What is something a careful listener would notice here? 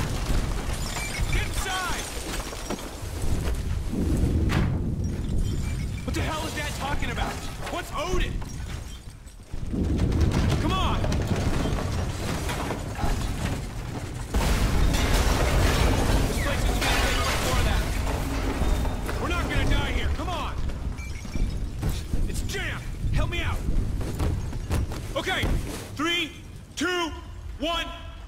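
A man shouts urgently nearby.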